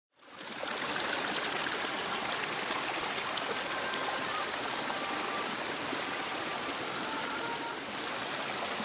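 Water rushes and splashes over rocks in a stream.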